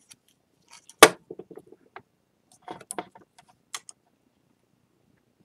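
Tools clink down on a wooden surface.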